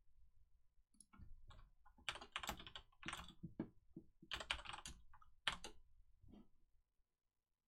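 Keyboard keys clatter under fast typing.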